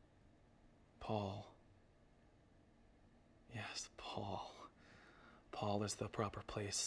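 A young man speaks quietly and close by, in short bursts.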